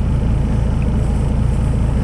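A small car drives past.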